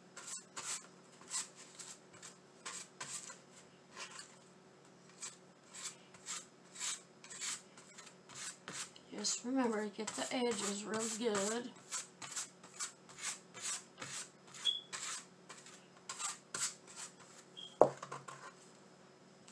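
A brush dabs and swishes briskly across paper.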